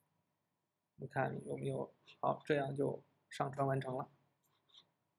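A man speaks calmly and steadily into a microphone, close by.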